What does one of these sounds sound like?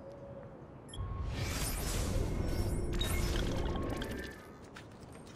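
A loud whooshing rush sounds.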